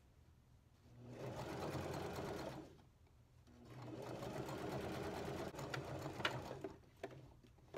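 A sewing machine runs in quick bursts, whirring and clattering.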